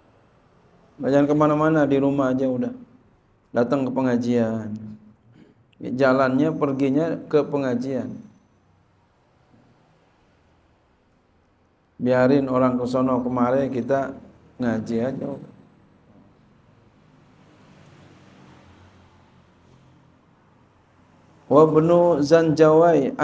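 A man speaks into a microphone in a slow, chanting voice, in a small echoing room.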